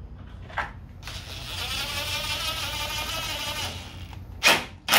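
A cordless power drill whirs steadily.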